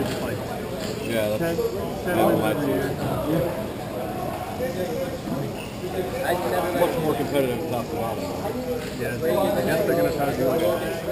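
Men shout and call out to each other across a large echoing hall.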